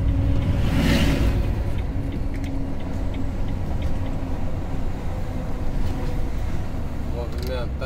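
A vehicle's engine hums steadily while driving.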